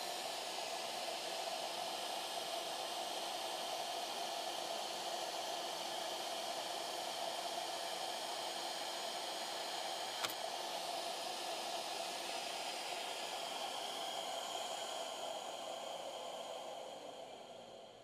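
A machine's fan hums steadily nearby.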